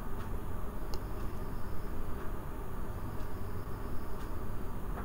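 A wooden spatula scrapes and clicks against a pan.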